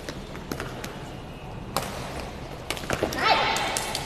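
A volleyball is struck with sharp slaps that echo in a large hall.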